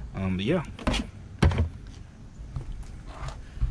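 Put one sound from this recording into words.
A hard panel clicks and knocks into place.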